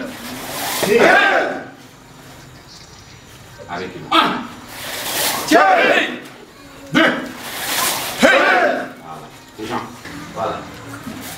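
A group of men shout together in loud, sharp bursts in an echoing room.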